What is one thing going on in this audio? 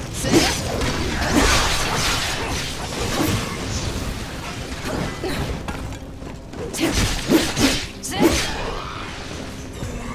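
Flames burst in loud whooshing blasts.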